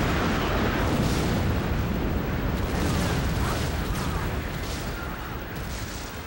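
A spaceship engine roars loudly and steadily, slowly fading.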